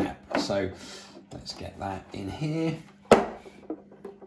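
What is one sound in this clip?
A plastic lid clicks into place.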